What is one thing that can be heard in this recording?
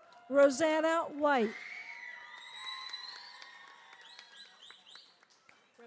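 People in an audience clap their hands.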